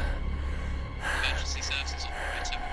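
A man speaks calmly over a phone line.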